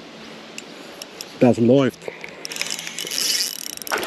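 A fishing reel clicks as it is wound in.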